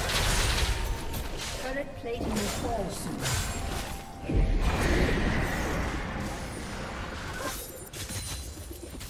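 Game figures strike with loud impacts.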